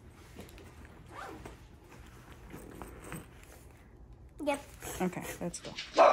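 A backpack's fabric rustles as a young girl handles it.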